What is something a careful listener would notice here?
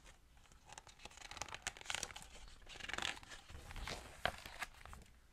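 Paper pages rustle as a book page turns.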